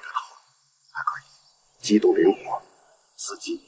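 A middle-aged man speaks firmly and close by.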